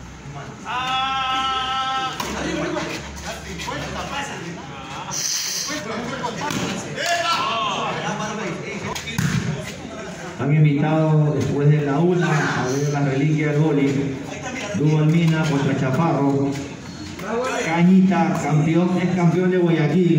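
A volleyball is slapped with hands, making dull thuds.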